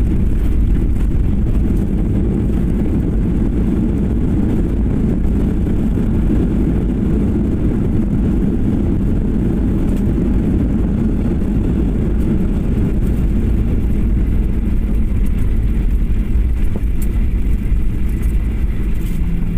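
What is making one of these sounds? Wheels rumble and bump over the runway.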